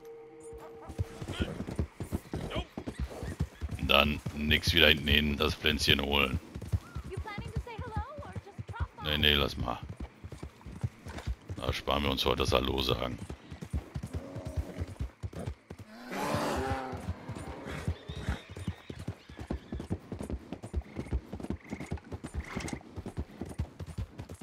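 Hooves of a galloping horse thud steadily on a dirt track.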